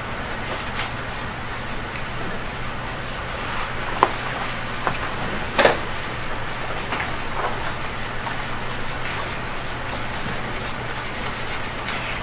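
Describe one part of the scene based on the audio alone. A marker squeaks on paper.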